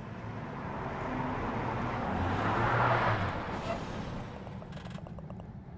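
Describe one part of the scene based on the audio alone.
A bus engine rumbles as a bus pulls in and comes to a stop.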